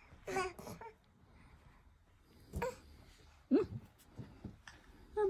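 A baby coos and babbles up close.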